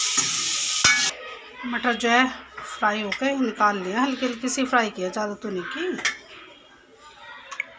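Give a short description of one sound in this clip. A metal ladle scrapes and clinks against a metal pan.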